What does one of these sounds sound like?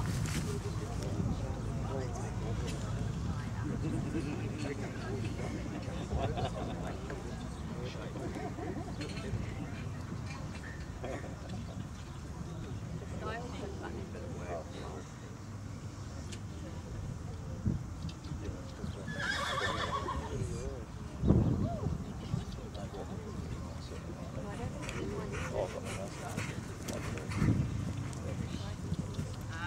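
A horse's hooves thud on grass as it canters.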